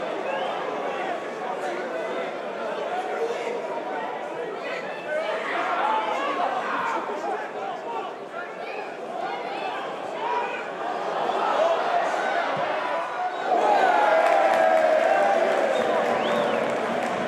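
A stadium crowd murmurs and chants, then roars loudly.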